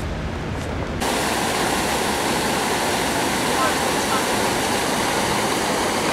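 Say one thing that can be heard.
A fountain splashes and gushes steadily.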